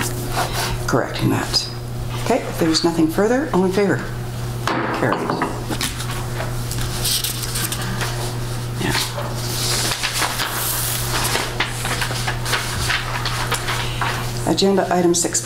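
An elderly woman speaks calmly into a microphone in a room.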